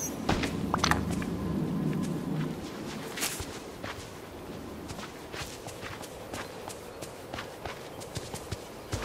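Light footsteps run along a dirt path.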